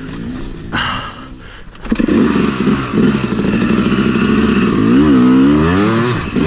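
A dirt bike engine idles and revs up and down close by.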